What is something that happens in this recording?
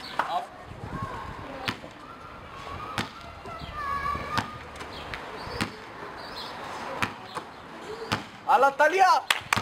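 A ball bounces on hard pavement.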